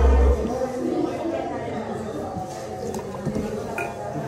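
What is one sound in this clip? Liquid pours into a metal cup.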